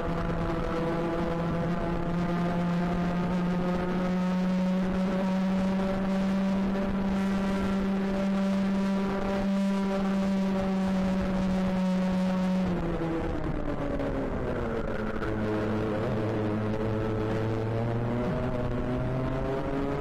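A kart engine buzzes loudly up close, its pitch holding steady and then dropping and rising again.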